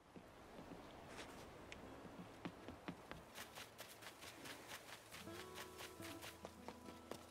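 Footsteps patter quickly on wooden boards and then on grass.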